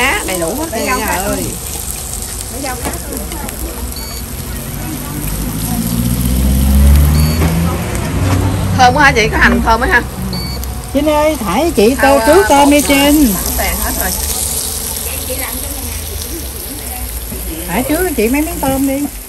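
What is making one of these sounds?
A middle-aged woman talks calmly close by.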